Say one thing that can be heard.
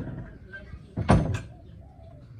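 A wooden door bangs shut.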